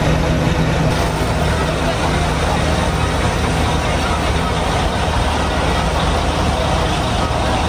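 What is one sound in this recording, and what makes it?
Car engines idle and hum in slow traffic outdoors.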